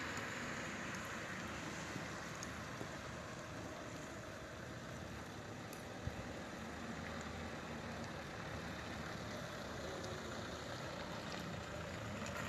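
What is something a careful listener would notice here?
A car engine hums at low speed.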